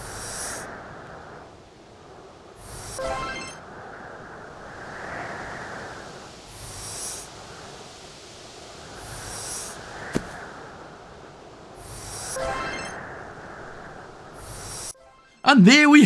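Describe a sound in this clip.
A boulder scrapes as it is pushed across ice.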